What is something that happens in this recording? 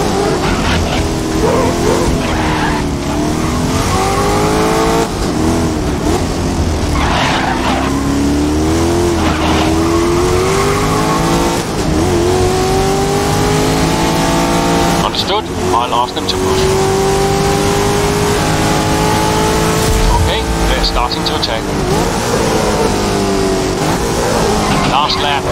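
A racing car engine roars loudly, its pitch rising and falling as the gears change.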